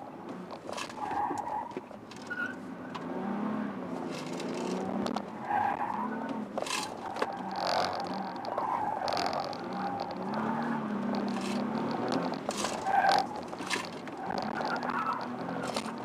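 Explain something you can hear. Tyres squeal on pavement during sharp turns.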